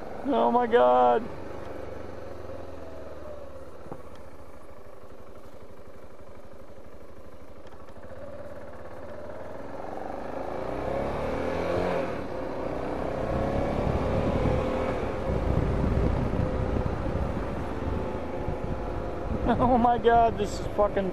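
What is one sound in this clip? A motorcycle engine hums steadily and grows louder as the bike speeds up.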